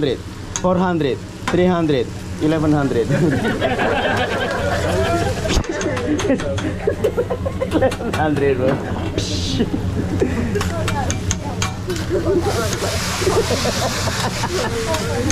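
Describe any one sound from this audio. Several adults chat and laugh together nearby.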